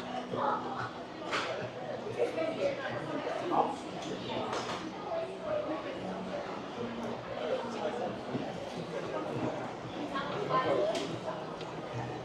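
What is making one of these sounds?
Men and women chatter softly in the distance in a large, echoing indoor space.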